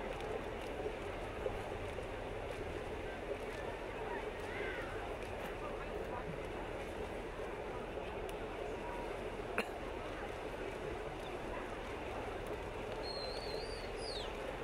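A crowd cheers and murmurs in the distance.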